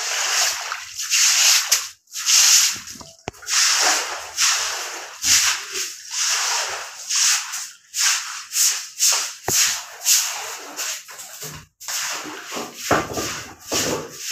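A broom sweeps swishing through shallow water on a floor.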